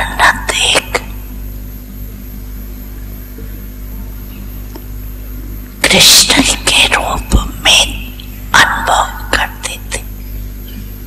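An elderly woman speaks slowly and calmly into a microphone, with pauses.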